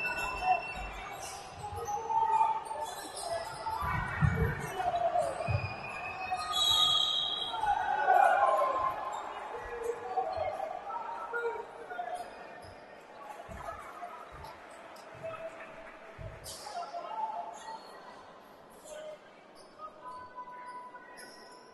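Spectators talk and cheer in an echoing hall.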